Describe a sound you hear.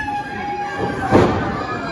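A wrestler slams heavily onto the ring mat with a loud thud.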